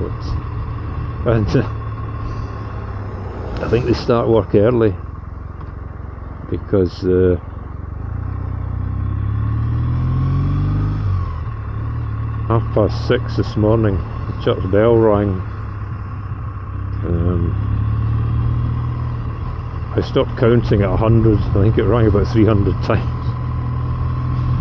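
A motorcycle engine hums steadily at low speed.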